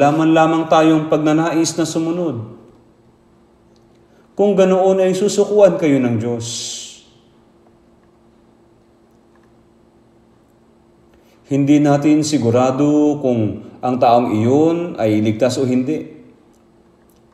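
An elderly man speaks with emphasis into a microphone, in pauses, in a large echoing space.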